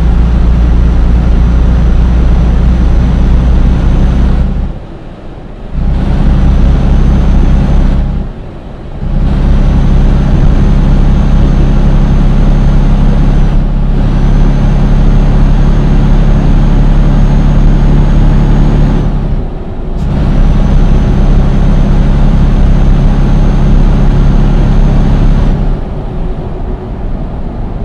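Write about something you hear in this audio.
A diesel truck engine drones under load, dropping away briefly at gear changes.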